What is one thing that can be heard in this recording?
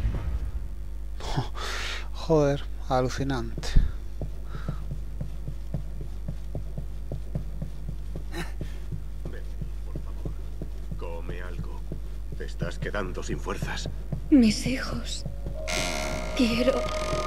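Footsteps tread steadily on a wooden floor.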